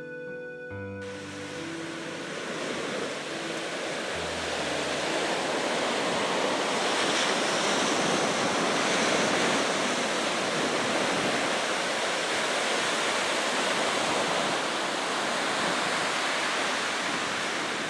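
Waves break and wash onto a beach, outdoors in wind.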